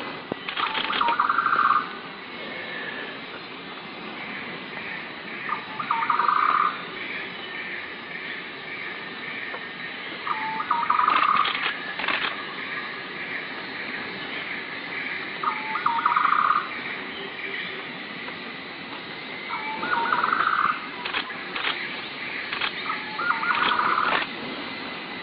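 A bird gives a short trilling call again and again, about every five seconds.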